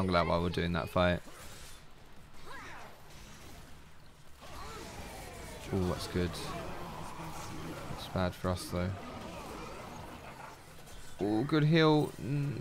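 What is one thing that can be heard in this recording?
Game spells whoosh and blast in quick succession.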